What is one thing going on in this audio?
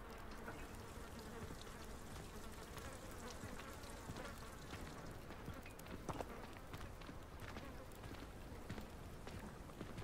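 Footsteps tread on a stone path.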